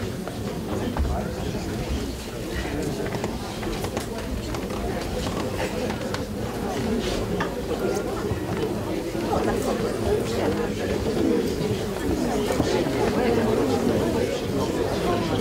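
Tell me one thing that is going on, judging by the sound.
A crowd of men and women chatters all around in an echoing hall.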